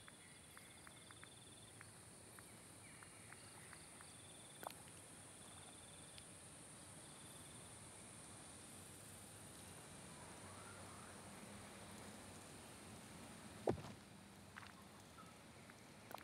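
Soft menu clicks and blips sound as items are browsed.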